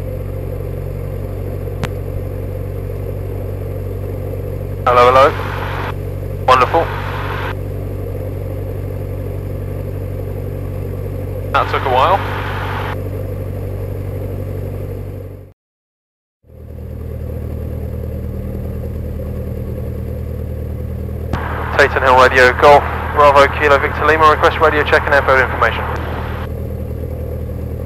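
A small aircraft engine drones steadily, heard from inside the cockpit.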